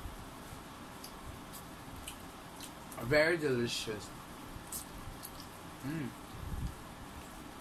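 A young woman smacks her lips while eating.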